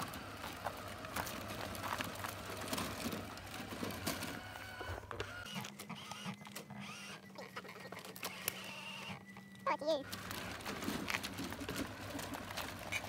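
Small plastic tyres crunch over dirt and twigs.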